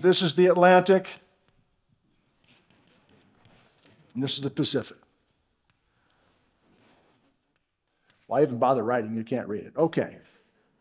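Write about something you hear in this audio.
A man lectures through a microphone in a large hall, speaking in bursts with pauses.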